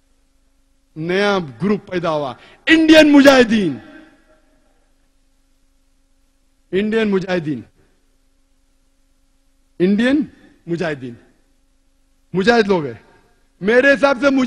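A middle-aged man speaks with animation into a microphone, in short phrases with pauses.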